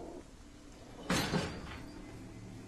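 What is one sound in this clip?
A heavy wooden door thuds.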